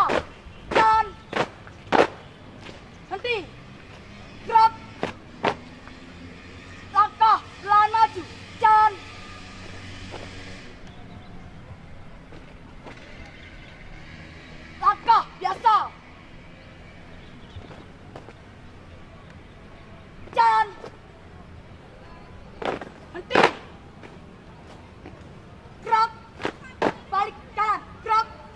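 Young people shout marching calls loudly.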